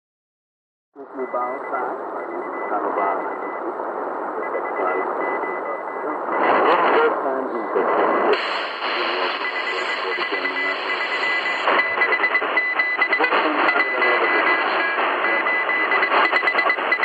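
A noisy shortwave radio recording with a Morse code tone plays back.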